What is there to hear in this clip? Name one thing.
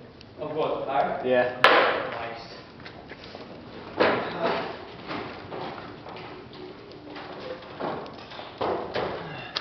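Burning wood crackles and pops.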